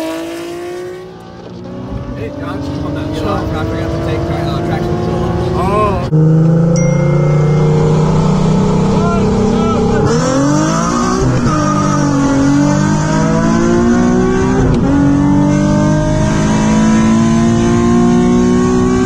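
A car engine roars from inside the car as it accelerates hard, rising in pitch through several gear changes.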